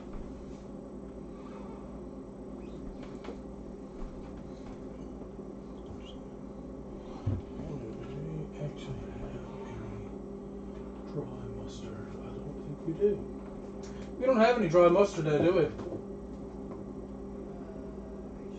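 Liquid bubbles steadily in a pot.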